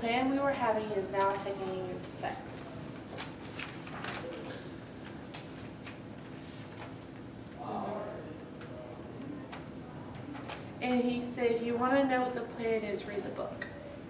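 A young woman reads aloud in an echoing room.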